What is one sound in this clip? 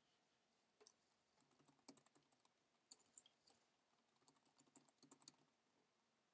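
Keys click on a computer keyboard in quick bursts.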